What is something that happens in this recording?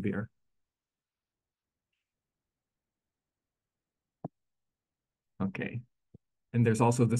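A man speaks calmly and closely into a microphone, in short bursts with pauses.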